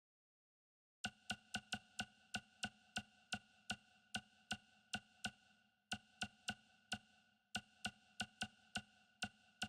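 Short menu clicks tick rapidly, one after another.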